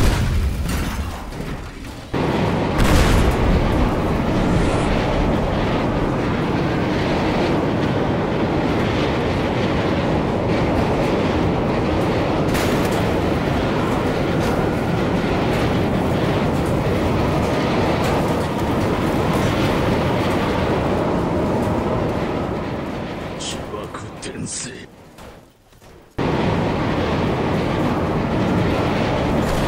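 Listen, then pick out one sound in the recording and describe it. Crumbling metal and debris rumble and crash steadily as a large airliner breaks apart.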